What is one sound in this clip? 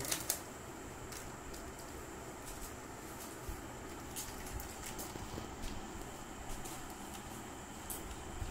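A plastic toy motorcycle clicks and rattles as a child handles it.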